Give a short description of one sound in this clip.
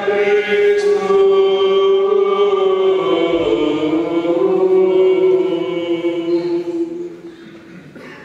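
A man chants in a sustained voice through a microphone in an echoing hall.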